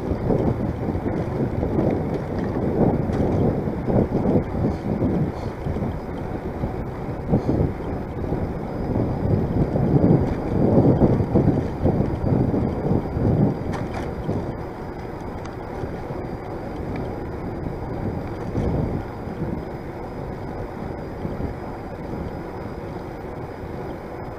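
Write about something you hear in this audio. Bicycle tyres roll steadily on a paved path.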